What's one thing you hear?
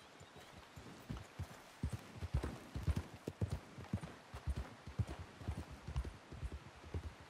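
Horse hooves thud on a dirt path.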